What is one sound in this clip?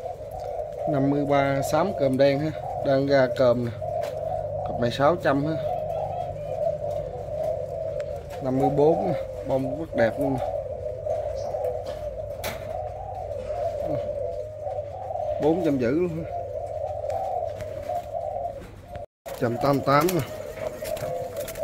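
Doves coo repeatedly in low, rolling calls.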